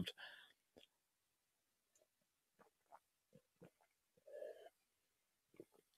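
A man sips a drink from a mug.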